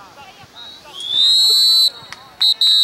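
A referee's whistle blows a long, loud blast.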